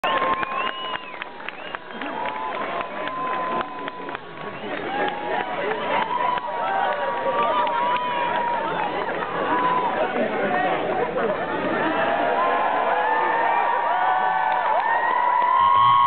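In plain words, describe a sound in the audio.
A large crowd outdoors cheers and shouts excitedly, growing louder.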